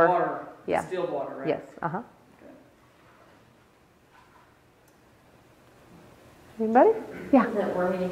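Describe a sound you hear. A woman speaks calmly and clearly nearby, with pauses.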